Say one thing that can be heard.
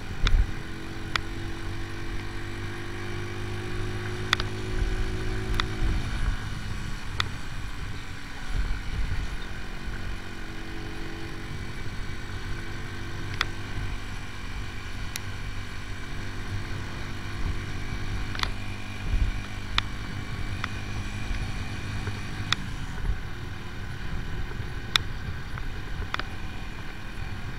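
A motorcycle engine hums steadily, rising and falling in pitch as it shifts gears.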